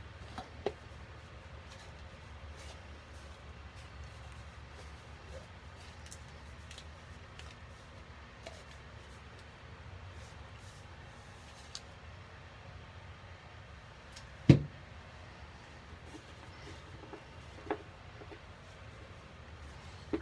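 Rubber-gloved hands crumble and knead damp powder in a bowl.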